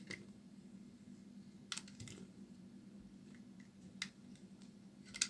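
A knife scrapes and shaves a bar of soap in crisp little scratches.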